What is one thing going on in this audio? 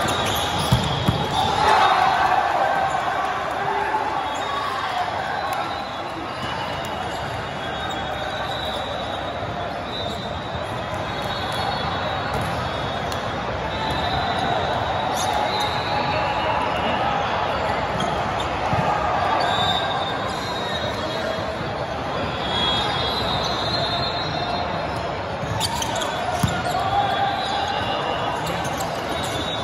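Voices and shouts of many players echo through a large hall.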